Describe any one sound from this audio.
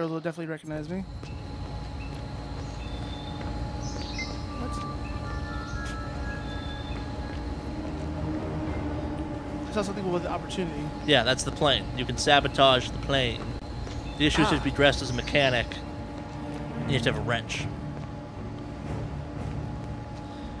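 A low hum fills a large echoing hall.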